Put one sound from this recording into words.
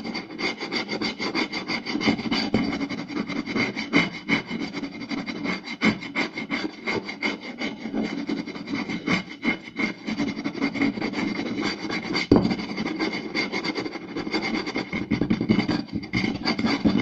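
Fingertips scratch and rub over a wooden board close up.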